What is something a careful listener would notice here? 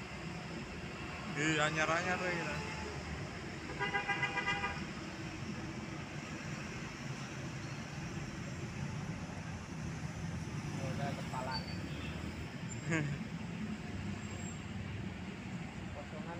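Small motorcycles ride by on a street.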